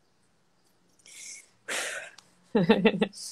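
A young woman laughs softly over an online call.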